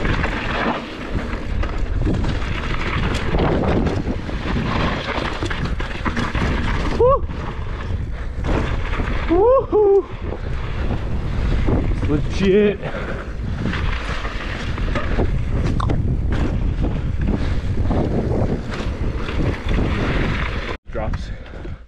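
Bicycle tyres rumble and crunch over a dirt and gravel trail.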